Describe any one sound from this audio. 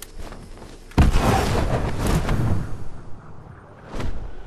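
Large wings flap and whoosh through the air.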